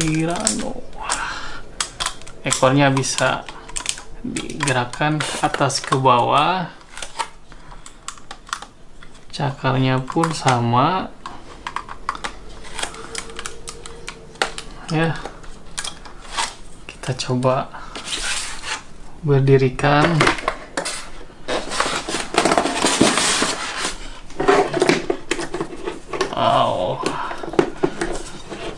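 Plastic toy parts click and snap as they are fitted together.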